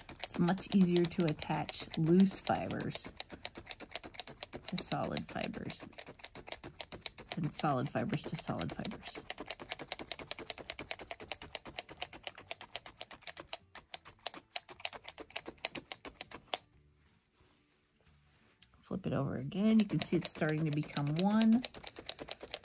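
A felting needle stabs rapidly and repeatedly into a soft pad with quick, dull pokes.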